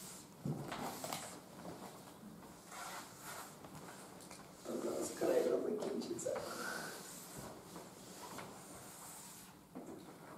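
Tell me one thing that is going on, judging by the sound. A man speaks calmly, heard from a distance in an echoing room.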